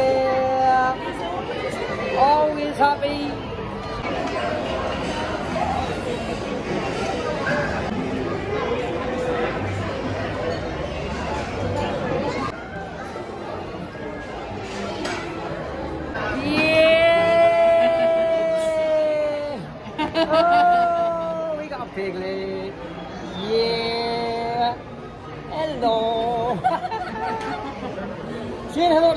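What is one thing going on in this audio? A crowd chatters in a large, echoing hall.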